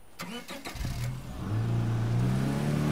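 A car engine starts and revs up as the car drives off.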